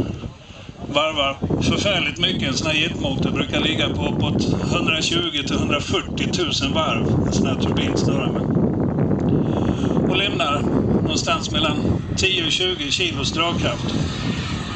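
Men talk nearby outdoors.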